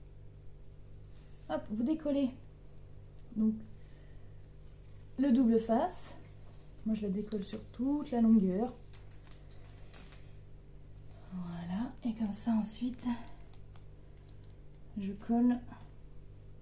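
Paper tape rustles and crinkles as hands handle it.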